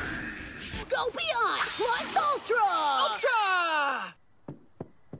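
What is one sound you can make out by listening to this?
Young boys shout excitedly.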